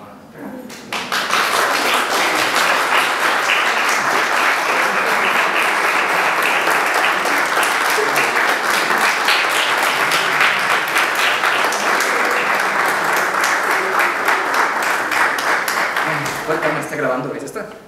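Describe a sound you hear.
An audience claps loudly and steadily.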